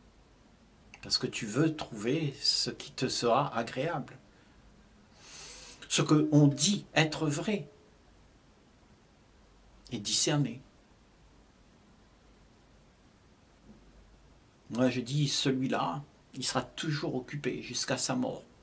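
An elderly man speaks calmly and slowly, close to the microphone, with long pauses.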